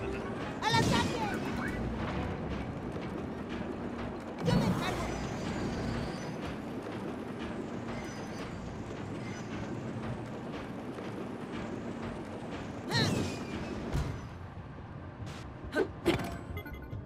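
Wheels screech and clank against the rails in short bursts.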